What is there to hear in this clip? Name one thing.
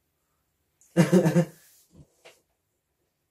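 A young man laughs briefly, close by.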